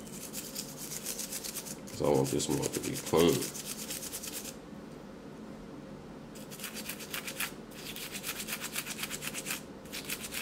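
A toothbrush scrubs rapidly against small metal pieces.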